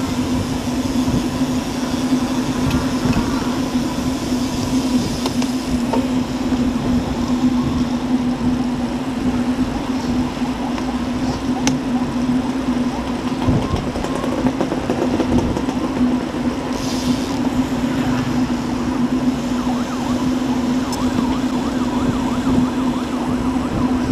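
Bicycle tyres hum steadily on a paved road.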